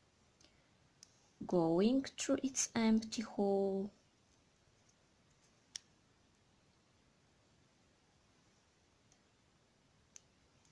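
Small beads click softly as fingers handle a beaded ornament.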